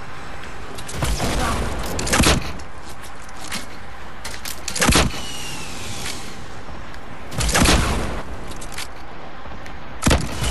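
A rocket launcher fires with a whooshing thump.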